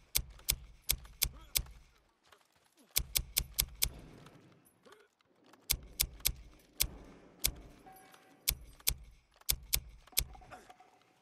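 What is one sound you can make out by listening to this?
Menu selection clicks tick quickly in bursts.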